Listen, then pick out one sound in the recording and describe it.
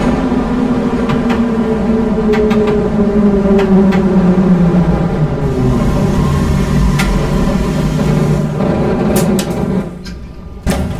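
A train's electric motors whine, falling in pitch as the train slows down.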